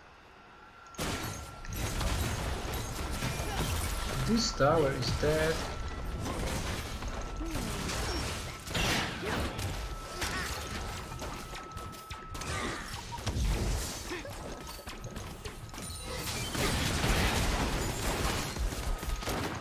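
Game battle effects clash and crackle loudly.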